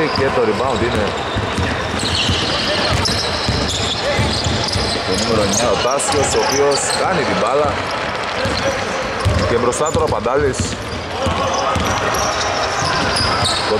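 A basketball bounces repeatedly on a wooden floor.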